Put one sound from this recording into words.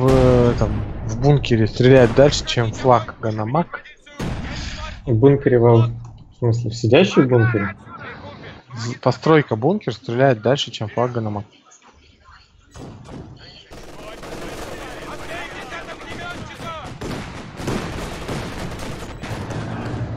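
Shells explode with loud booms.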